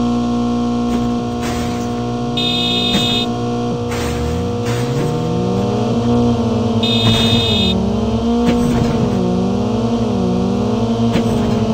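A car engine roars and revs as the car drives over rough ground.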